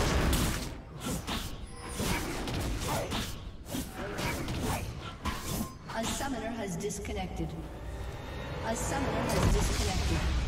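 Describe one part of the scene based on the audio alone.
Game spell effects crackle and clash in a fight.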